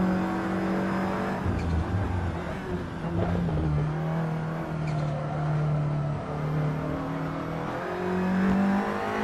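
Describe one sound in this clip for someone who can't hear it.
A racing car engine roars, revving up and down through gear changes.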